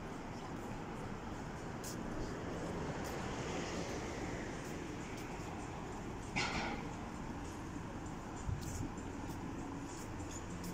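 Footsteps fall on a paved pavement outdoors.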